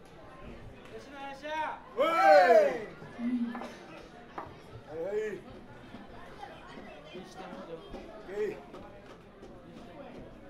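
A crowd murmurs outdoors.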